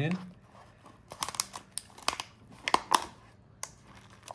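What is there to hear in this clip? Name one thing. A plastic tray crinkles.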